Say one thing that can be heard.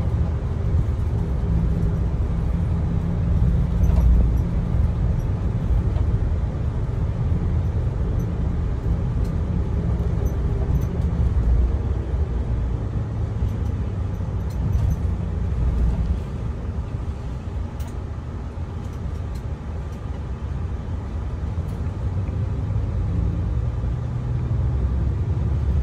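A bus engine rumbles low and steady from inside the cabin.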